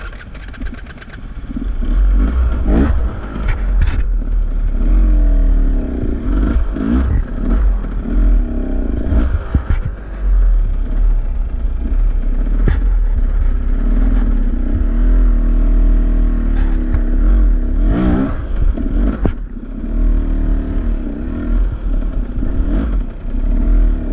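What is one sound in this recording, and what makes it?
A dirt bike engine rumbles nearby, its pitch rising and falling as it revs.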